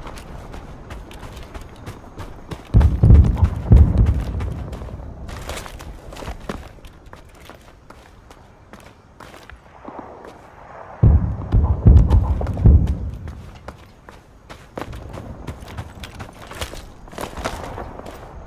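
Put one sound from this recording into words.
Footsteps walk steadily over ground and wooden floors.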